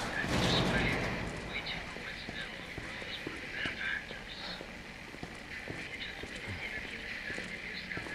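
Footsteps splash on wet pavement.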